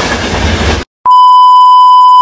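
A steady high test tone sounds.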